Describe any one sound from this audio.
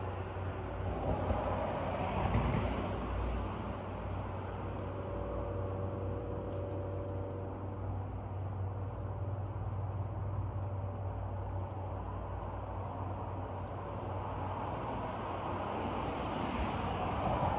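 Wind rustles the leaves of tall trees outdoors.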